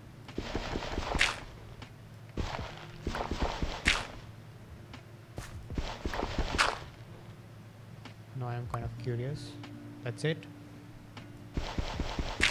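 Stone crunches in repeated bursts as it is dug.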